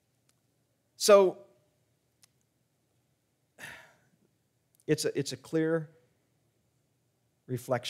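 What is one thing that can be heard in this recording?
A middle-aged man speaks slowly and deliberately into a microphone, with pauses between phrases.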